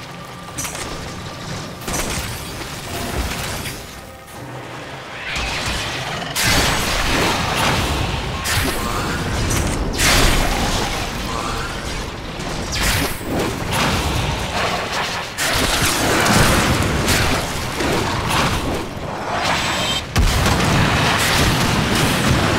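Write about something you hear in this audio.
Energy weapon blasts fire and crackle rapidly.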